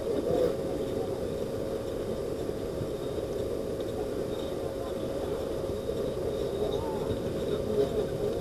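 Distant players shout across an open outdoor pitch.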